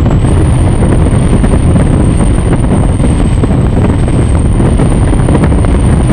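A powerful boat engine roars loudly and steadily up close.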